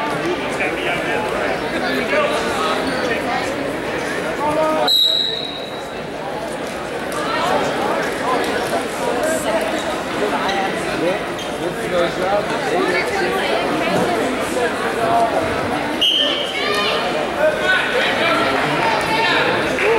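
A crowd murmurs and shouts in a large echoing gym.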